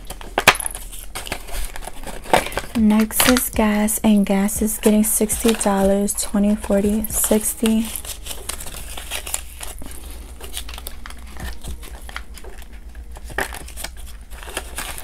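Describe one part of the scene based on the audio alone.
Paper banknotes rustle and crinkle close by.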